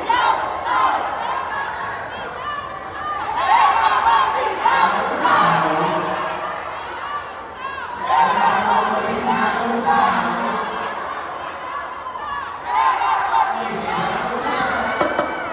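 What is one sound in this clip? A crowd cheers and shouts from the stands.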